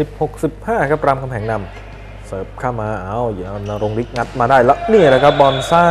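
A volleyball is struck by hands during a rally.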